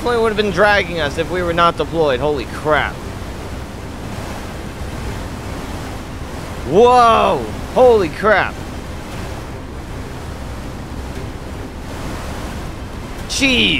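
Strong wind roars steadily.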